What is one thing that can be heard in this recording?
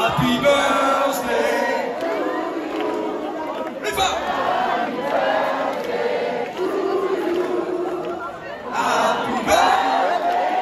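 A crowd cheers and sings along close by.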